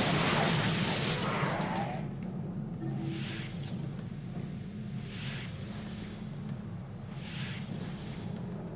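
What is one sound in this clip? Spell effects whoosh and crackle in a video game.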